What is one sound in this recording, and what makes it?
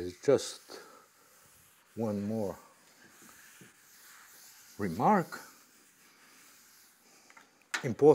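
A board eraser rubs across a chalkboard.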